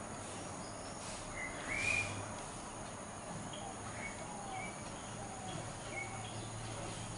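A small bird chirps and calls nearby.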